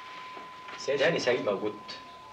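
A man speaks at a door.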